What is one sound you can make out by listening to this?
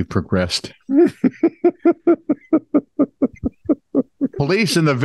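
A man laughs heartily in rhythmic bursts over an online call.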